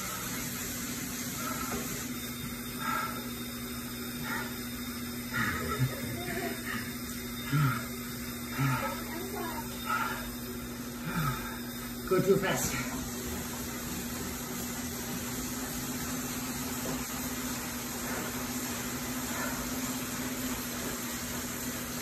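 A bike trainer hums steadily.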